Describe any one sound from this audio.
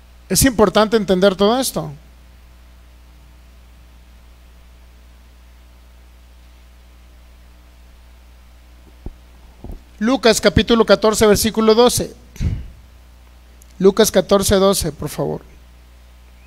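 A man speaks with animation into a microphone, heard through loudspeakers, with long pauses.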